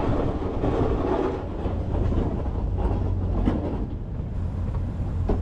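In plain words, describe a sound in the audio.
A snow plow blade scrapes and pushes snow.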